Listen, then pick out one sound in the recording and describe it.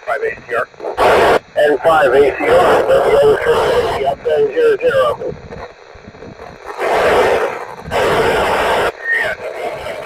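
Wind gusts buffet the microphone in short bursts.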